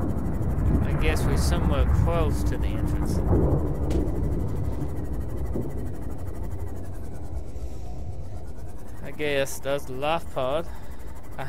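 A man talks into a headset microphone.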